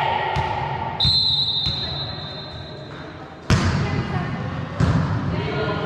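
A volleyball is struck with loud slaps.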